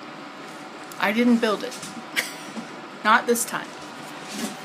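An older woman speaks close by, laughing softly.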